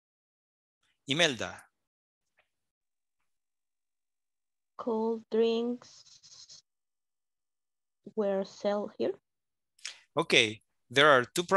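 A woman speaks slowly and clearly over an online call, pausing between phrases.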